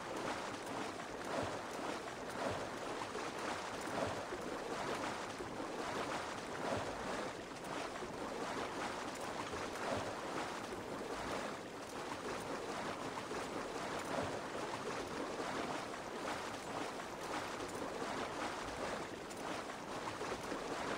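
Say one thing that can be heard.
Water splashes as a horse swims.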